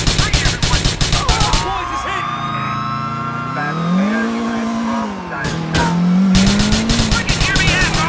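A police siren wails nearby.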